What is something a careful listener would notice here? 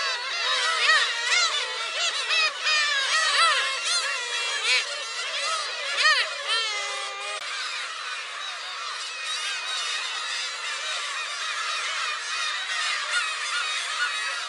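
Many gulls call loudly and shrilly close by.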